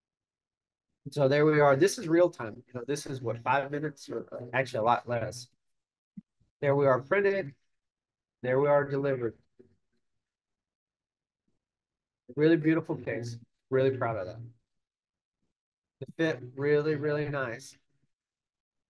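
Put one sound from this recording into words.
A man speaks calmly into a microphone, heard as if over an online call.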